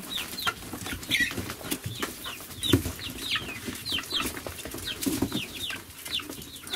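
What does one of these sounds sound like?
Chickens peck rapidly at feed.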